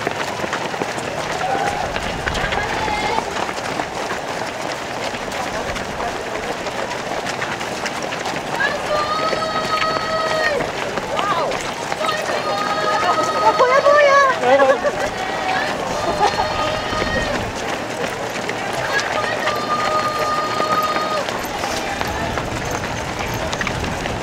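Many runners' footsteps patter on pavement.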